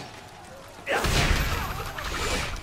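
Weapons clash and a spell bursts in a fight.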